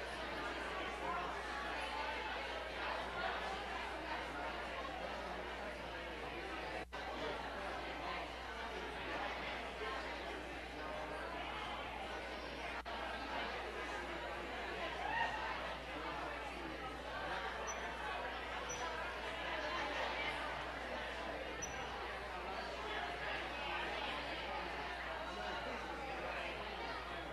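Many men and women chatter at once in a large echoing hall.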